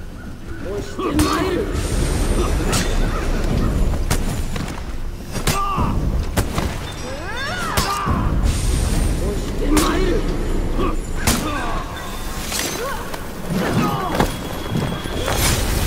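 Steel blades clash and ring in a fight.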